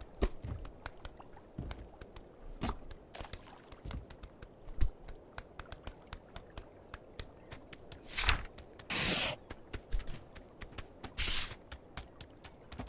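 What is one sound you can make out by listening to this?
A goose's webbed feet patter quickly on stone and grass.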